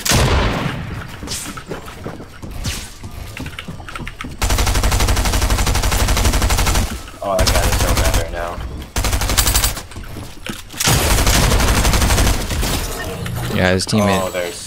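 Shotgun blasts ring out in a video game.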